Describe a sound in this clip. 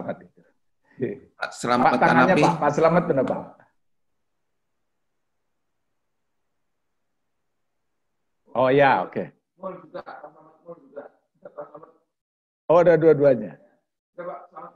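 A middle-aged man laughs over an online call.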